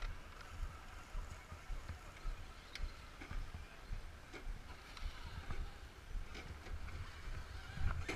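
Small electric motors whine as toy trucks crawl over rock.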